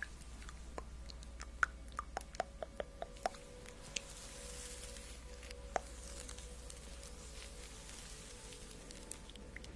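Sharp mouth clicks and pops sound close to a microphone.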